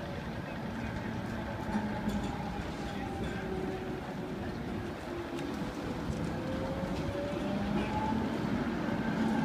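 A tram rolls past with a low rumble.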